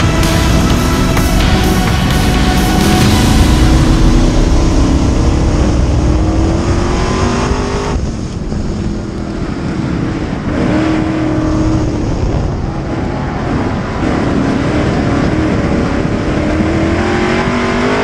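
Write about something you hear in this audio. A race car engine roars loudly from close by, rising and falling as it revs.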